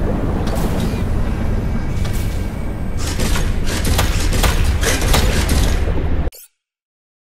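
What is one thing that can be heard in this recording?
A submarine's engine rumbles deeply underwater.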